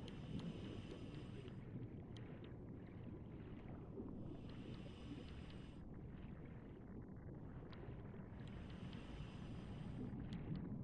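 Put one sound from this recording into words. Water rumbles low and steadily all around.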